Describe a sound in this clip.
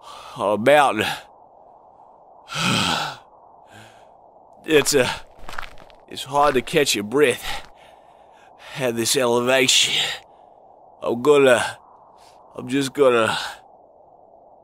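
A man whimpers and sobs with a trembling, high voice.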